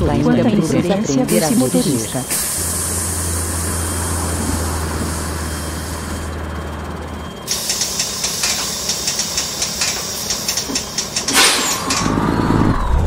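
A bus engine idles with a low hum.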